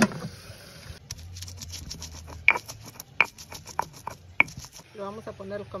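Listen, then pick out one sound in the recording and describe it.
A stone pestle knocks and grinds in a stone mortar.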